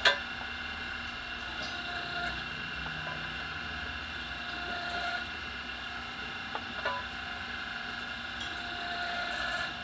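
A machine whirs steadily as a wheel rim turns on it.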